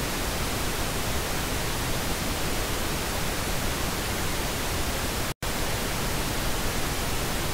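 A steady, even hiss plays from a loudspeaker and breaks off for a split second.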